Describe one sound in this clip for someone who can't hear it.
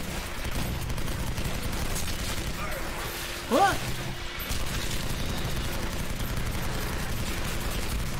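A machine gun fires in rapid, heavy bursts.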